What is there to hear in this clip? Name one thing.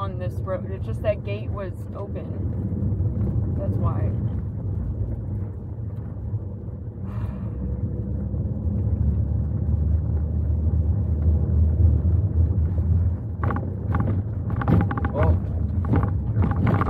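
A car engine hums low and steady inside the car.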